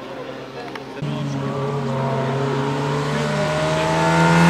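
Another rally car engine roars as it approaches.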